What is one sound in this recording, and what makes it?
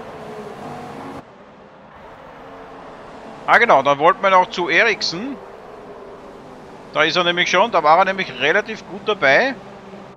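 Racing car engines whine at high revs.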